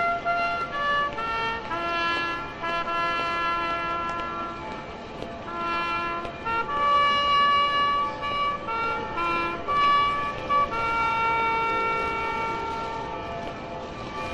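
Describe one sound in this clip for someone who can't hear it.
A trumpet plays a slow, solemn tune outdoors.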